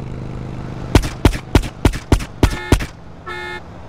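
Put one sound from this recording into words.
Rapid gunshots ring out.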